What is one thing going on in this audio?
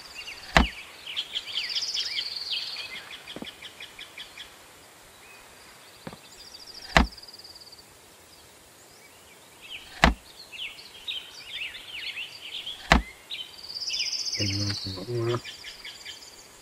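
Items rattle and clink as they are taken from storage.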